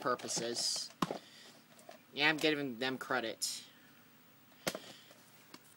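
A plastic cassette case clicks and knocks as a hand handles it.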